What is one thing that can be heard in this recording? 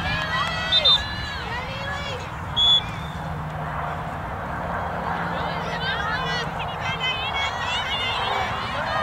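Young women call and shout nearby, with high, animated voices.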